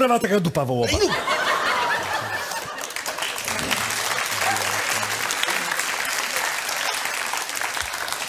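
A large audience laughs and applauds in a big hall.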